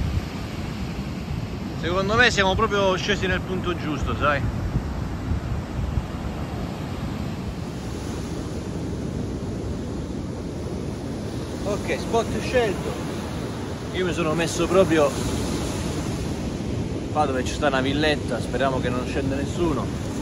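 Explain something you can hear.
Waves break and wash onto a beach nearby.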